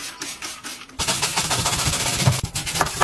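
A stiff brush scrubs a stove burner.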